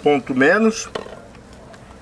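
A knife cuts meat on a wooden board.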